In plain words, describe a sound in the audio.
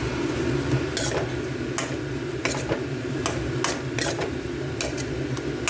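A metal spoon scrapes and clinks against a pan while stirring food.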